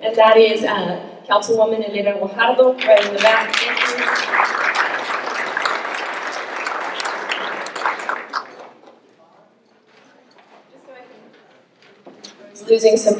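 A young woman speaks calmly into a microphone, heard through loudspeakers.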